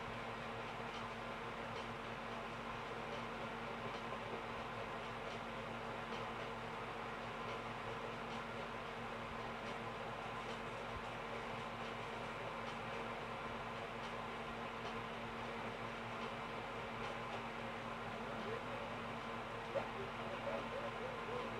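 Cheerful game music plays softly through a television speaker.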